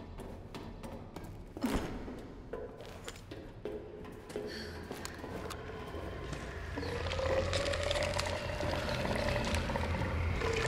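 Footsteps thud on metal walkways at a steady pace.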